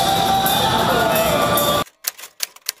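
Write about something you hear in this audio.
Loud music plays through loudspeakers in a large echoing arena.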